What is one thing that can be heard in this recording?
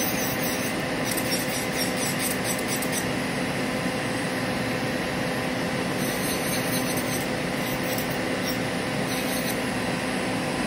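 An electric nail drill whirs steadily as it files a nail.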